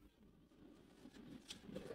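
A knife slices through soft fat on a wooden board.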